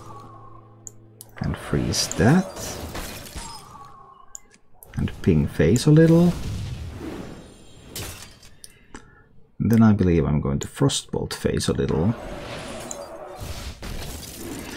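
Game spell effects whoosh and crackle with icy chimes.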